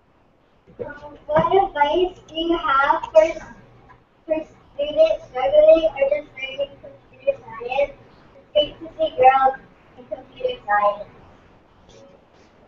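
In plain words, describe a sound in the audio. A young girl speaks through an online call.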